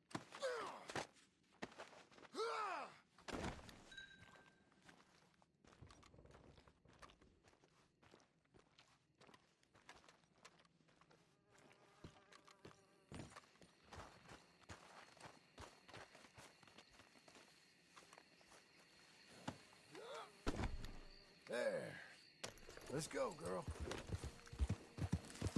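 A man grunts and groans with effort.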